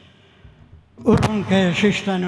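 A crowd of people sings together in a large, echoing hall.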